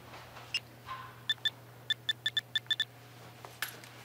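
A phone beeps as its keys are pressed.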